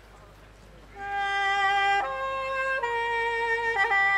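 A clarinet plays a melody.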